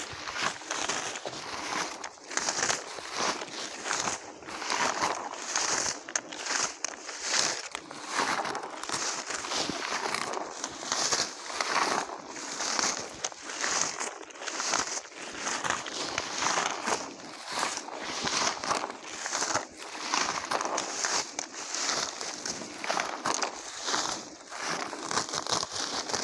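Leaves rustle as a man picks berries from low shrubs nearby.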